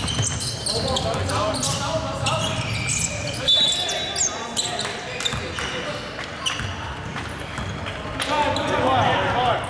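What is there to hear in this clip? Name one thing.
Young men shout and call out to each other across the court.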